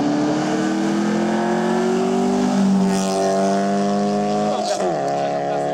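A rally car engine roars loudly, revving higher as the car speeds past close by.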